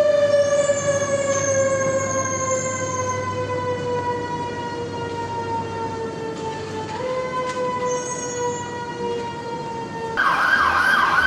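A fire engine's air horn blares steadily and slowly drops in pitch.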